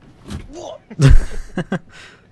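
A body thumps down into a seat.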